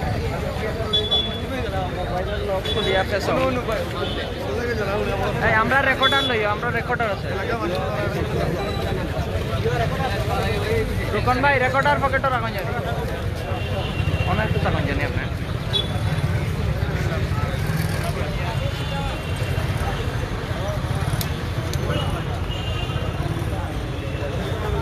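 A crowd of men talks and shouts outdoors, close by.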